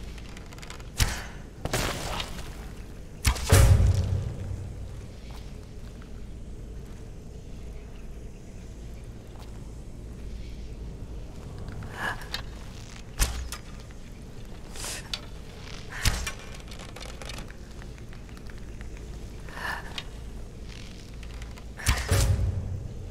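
A bowstring twangs as arrows are shot, again and again.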